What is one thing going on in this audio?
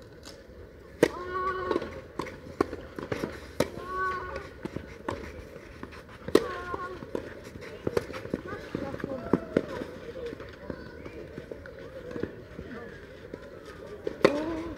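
Tennis balls are struck hard with rackets, with sharp pops back and forth.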